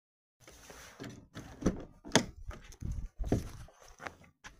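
A car door handle clicks.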